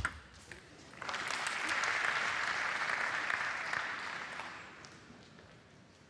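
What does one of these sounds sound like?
A crowd claps and cheers in a large hall.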